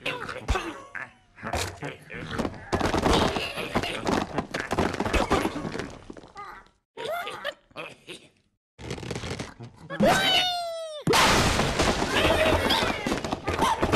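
Wooden blocks clatter and crash as a structure collapses.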